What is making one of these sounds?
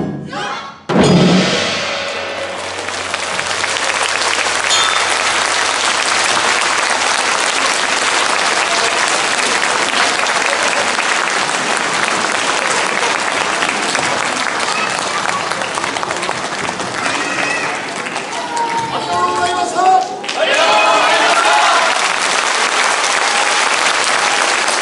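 A large audience claps and applauds steadily.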